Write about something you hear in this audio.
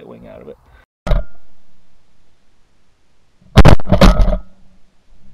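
A shotgun fires loudly outdoors.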